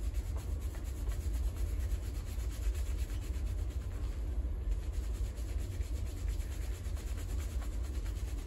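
Fingers scrub and squish through a soapy lather on hair, close by.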